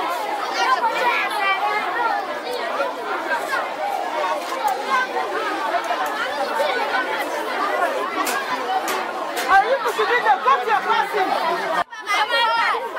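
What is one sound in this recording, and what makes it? A crowd of children chatters and calls out nearby outdoors.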